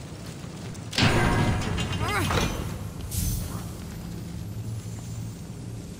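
A magical energy beam crackles and hums loudly.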